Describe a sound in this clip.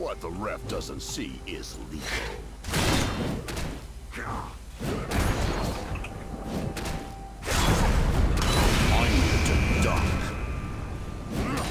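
Video game combat sounds clash with whooshing strikes and impacts.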